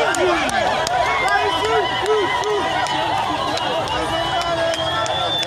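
Men in the crowd shout excitedly.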